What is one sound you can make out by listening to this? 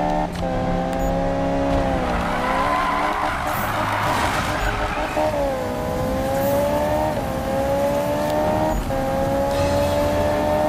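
A sports car engine roars at high revs, dipping and climbing with each gear change.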